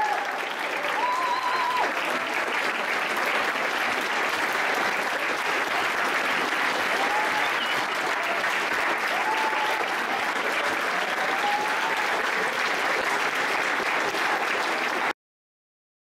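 A large crowd cheers and applauds loudly in an echoing hall.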